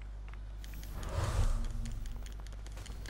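A loud electric blast booms and crackles.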